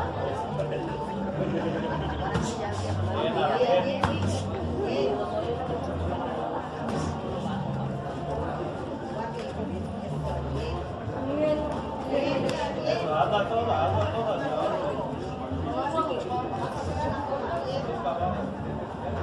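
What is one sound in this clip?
A crowd of onlookers chatters and calls out around the ring.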